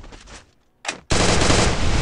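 A gun fires in a short burst.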